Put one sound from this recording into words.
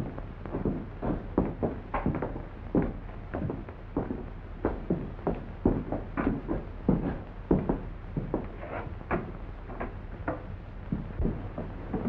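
Footsteps thud steadily.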